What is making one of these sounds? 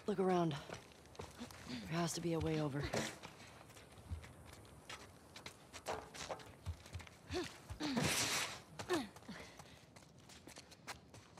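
Footsteps scuff steadily over hard ground.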